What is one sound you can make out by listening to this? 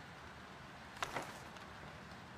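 A book snaps shut.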